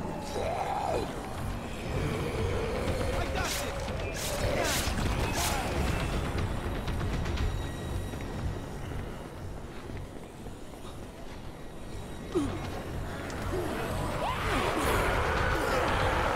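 Zombies groan and moan nearby.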